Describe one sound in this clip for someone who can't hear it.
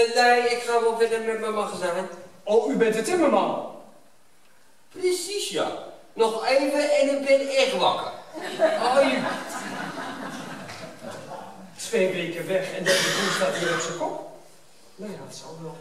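A man speaks loudly on a stage, heard from the audience in a large hall.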